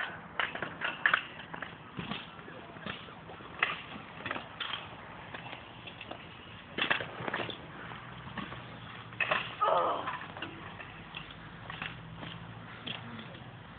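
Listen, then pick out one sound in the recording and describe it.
Scooter wheels roll and rattle over wet concrete.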